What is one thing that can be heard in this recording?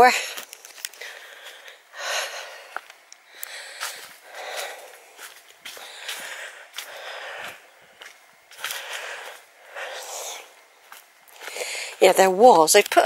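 Footsteps swish and crunch through long grass at a steady walking pace.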